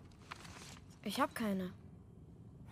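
A young man answers softly, close by.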